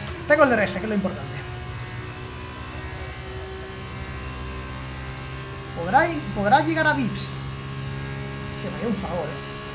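A racing car engine hums steadily.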